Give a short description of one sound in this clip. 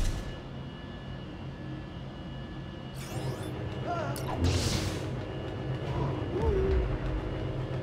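Lightsabers hum with a low, steady drone.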